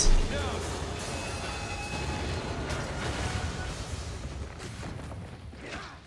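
An explosion roars with a deep rumble.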